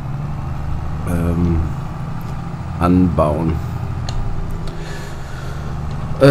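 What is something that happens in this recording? A tractor engine rumbles steadily at low speed.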